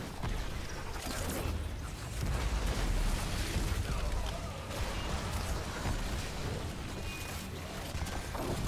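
Game battle effects crackle and blast in a dense fight.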